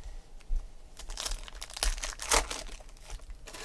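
A foil card pack crinkles and tears open in hands.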